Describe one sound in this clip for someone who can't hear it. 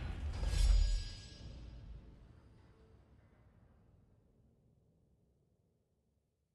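A deep booming victory chime rings out and slowly fades away.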